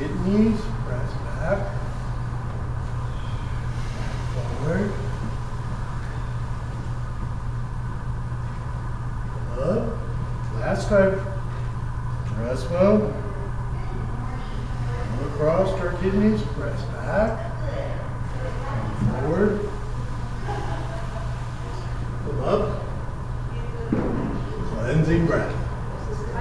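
A woman calls out instructions in a large echoing room.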